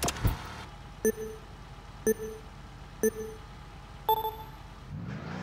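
A countdown beeps four times, the last beep higher.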